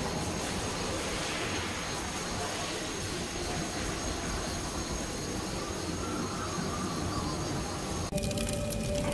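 Wind and rain blow steadily outdoors.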